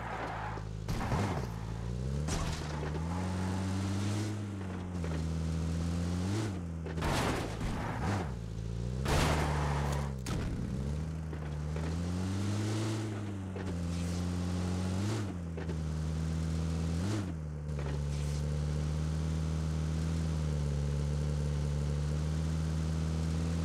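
A vehicle engine drones and revs up and down as it drives over rough ground.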